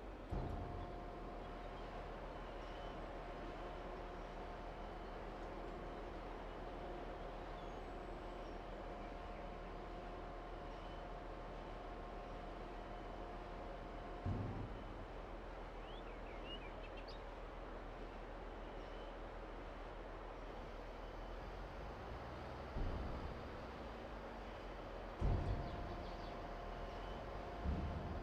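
Grain pours with a steady rushing hiss.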